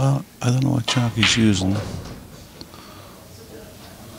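A cue tip strikes a pool ball with a sharp click.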